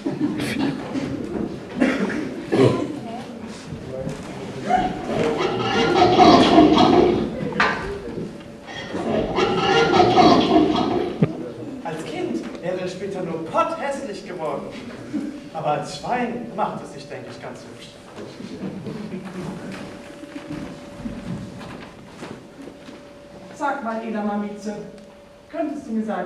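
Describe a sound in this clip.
Young actors speak loudly on a stage in an echoing hall.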